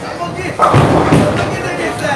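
A bowling ball rolls and rumbles down a lane.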